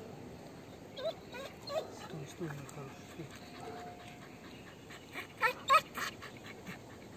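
A man talks softly to a dog.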